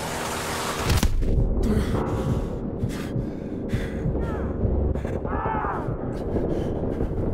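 Gunshots crack in bursts.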